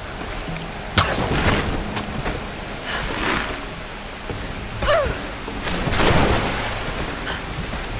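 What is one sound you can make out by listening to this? A heavy rope creaks and strains as a crate is hauled.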